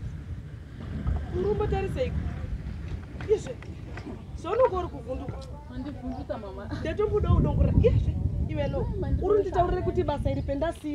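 Young women talk with animation outdoors, nearby.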